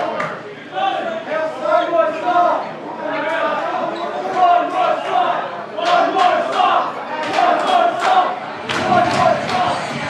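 Drums pound with crashing cymbals.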